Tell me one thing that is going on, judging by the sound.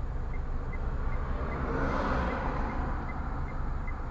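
A car passes close by with a rising and fading whoosh.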